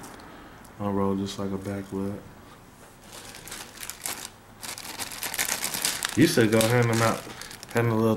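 A dry cigar leaf crackles and tears as it is peeled apart.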